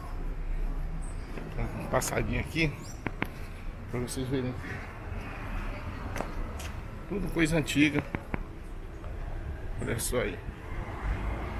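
An older man talks close to the microphone.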